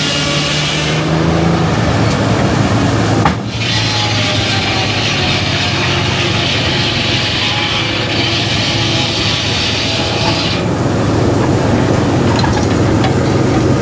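A sawmill's carriage rumbles and clanks along its track.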